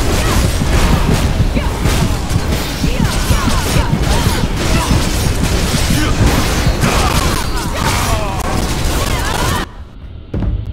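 Game combat sounds clash and burst loudly.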